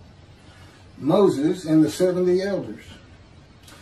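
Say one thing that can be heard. A middle-aged man speaks calmly into a microphone over an online call.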